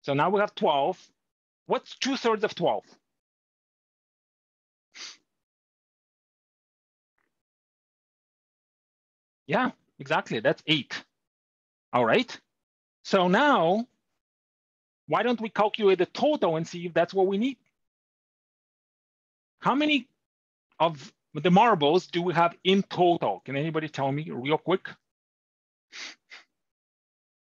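An older man explains calmly through a close microphone, with pauses.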